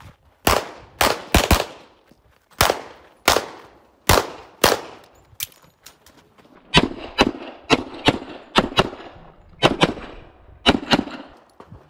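A pistol fires sharp shots in quick pairs, echoing outdoors.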